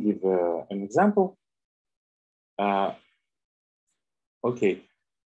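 A man speaks calmly through an online call microphone, in short phrases with pauses.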